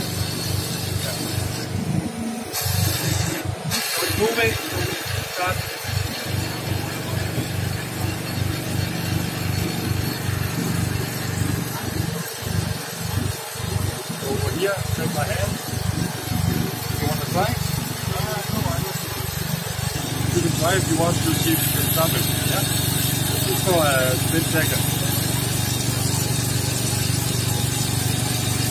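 A hydraulic pump hums steadily and grows louder.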